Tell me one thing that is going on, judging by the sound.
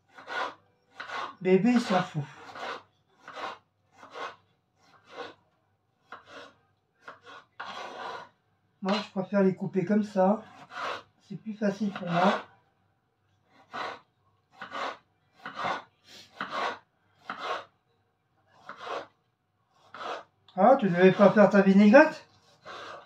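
A knife chops through a tomato onto a wooden board with soft repeated knocks.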